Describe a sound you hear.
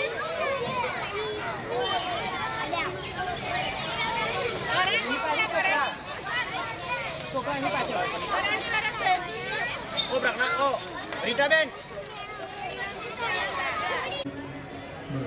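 A crowd of young children chatters and calls out nearby.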